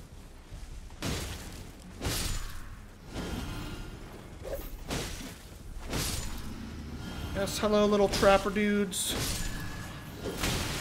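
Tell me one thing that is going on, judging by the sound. Sword blows clash and thud in a fight.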